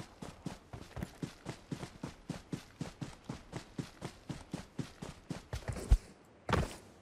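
Footsteps run quickly over grass.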